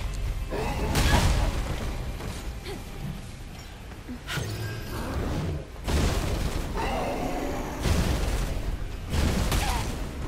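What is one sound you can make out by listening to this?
Heavy booming impacts thud.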